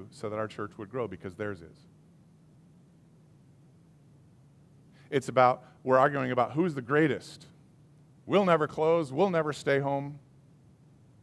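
A middle-aged man speaks calmly and expressively through a microphone, with pauses.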